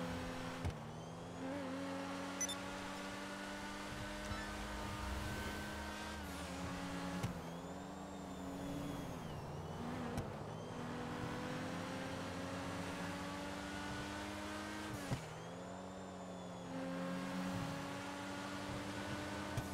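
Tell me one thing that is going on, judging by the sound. A sports car engine roars steadily, its pitch shifting up and down as it changes gear.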